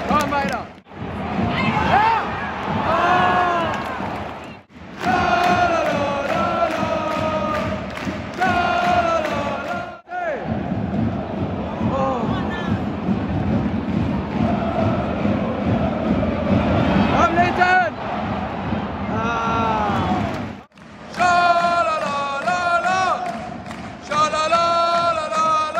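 A large crowd sings and chants loudly in an open stadium.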